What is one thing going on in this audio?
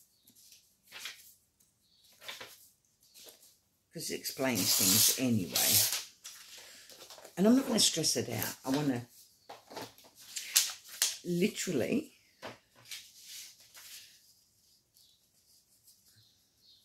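Book pages rustle and flip as they are turned.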